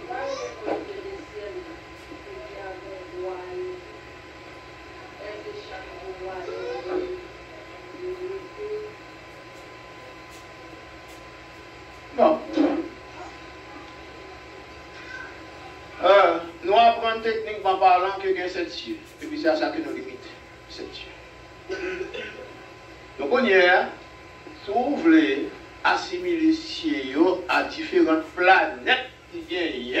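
An elderly man preaches with passion into a microphone, heard through a loudspeaker.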